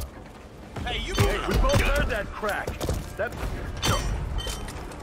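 A short scuffle thumps and knocks close by.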